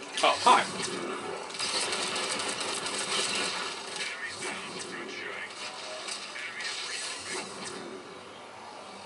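Gunshots and energy blasts crackle rapidly in a video game battle.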